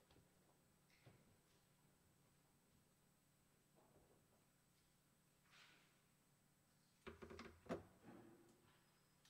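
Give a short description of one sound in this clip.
Wooden pews creak and knock now and then.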